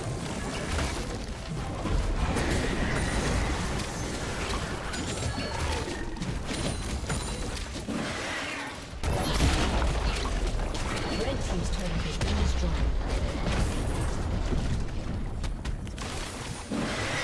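Fighting sounds of a video game whoosh and crackle throughout.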